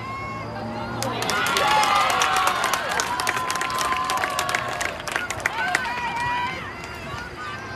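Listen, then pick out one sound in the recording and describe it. Spectators nearby cheer and shout excitedly outdoors.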